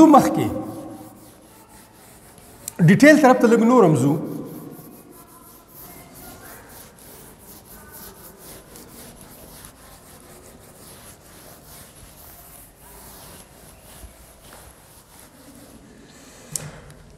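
A duster rubs across a board with soft, steady swishes.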